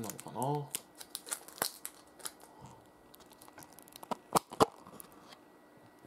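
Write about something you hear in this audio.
A plastic cup lid crinkles and clicks as it is handled.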